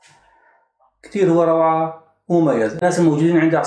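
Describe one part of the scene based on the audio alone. A man talks calmly to the listener, close by.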